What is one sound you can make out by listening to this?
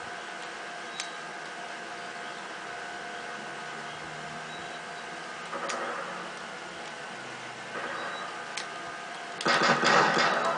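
Gunshots crack from a small television speaker.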